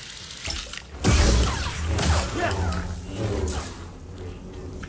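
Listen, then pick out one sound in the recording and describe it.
A lightsaber slashes and clashes.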